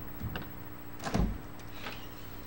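A heavy door opens with a thud.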